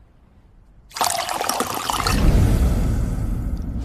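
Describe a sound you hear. Liquid pours and fizzes into a glass.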